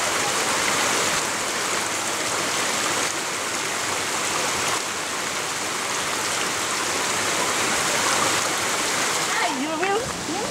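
A stream trickles and splashes over rocks.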